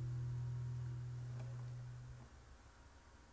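A guitar chord rings out and slowly fades.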